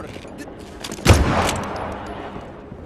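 A gunshot rings out.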